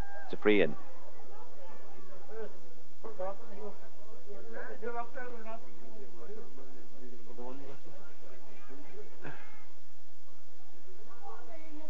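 A crowd of spectators shouts and calls out nearby.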